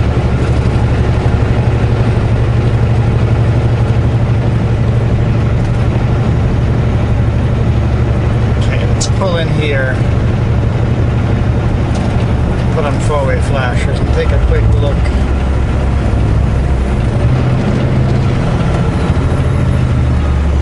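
Tyres roll over the road with a steady rushing noise.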